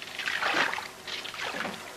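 Oars splash in water.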